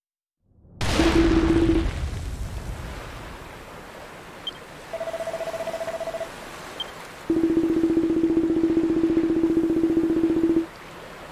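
Rapid electronic blips beep as game dialogue text types out.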